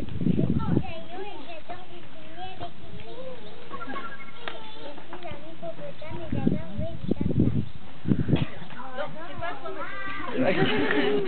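Young children sing together outdoors.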